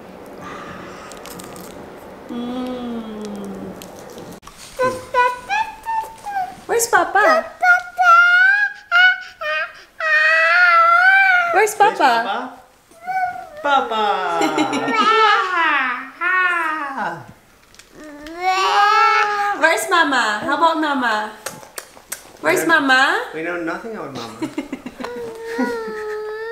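A toddler squeals, babbles and shouts excitedly close by.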